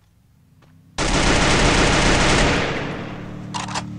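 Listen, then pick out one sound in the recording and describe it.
A loud blast bursts and rumbles away.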